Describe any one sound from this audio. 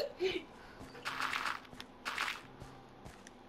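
A pickaxe chips at dirt blocks with short scraping bursts.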